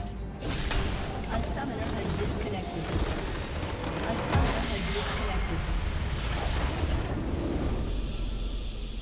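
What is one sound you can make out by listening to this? A large crystal structure shatters in a booming, rumbling explosion.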